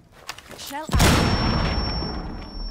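A grenade explodes with a loud blast and a ringing tail.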